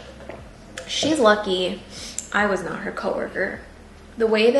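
A young woman talks calmly close by.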